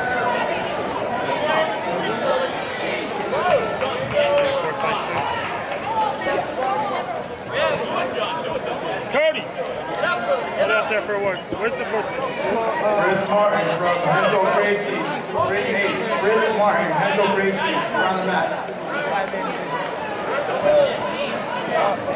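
A crowd of children and adults chatters throughout a large echoing hall.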